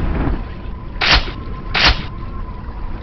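An axe swings and hits with a thud.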